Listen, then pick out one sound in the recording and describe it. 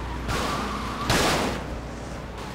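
A car crashes into a wall with a loud bang.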